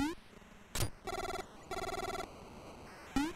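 Rapid beeping text blips sound.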